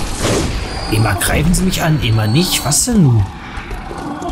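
Creatures shriek and groan.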